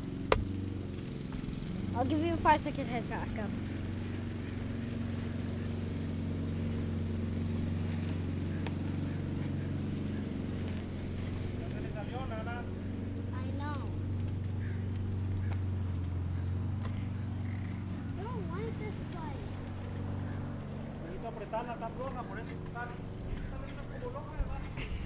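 Bicycle tyres roll steadily over asphalt.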